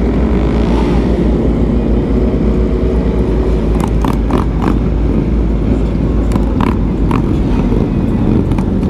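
Wind buffets loudly against a microphone at speed.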